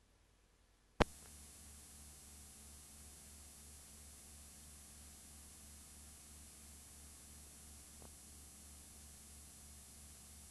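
Television static hisses steadily.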